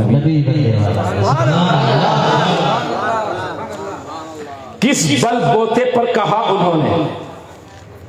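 A man chants loudly and with fervour into a microphone, heard through loudspeakers.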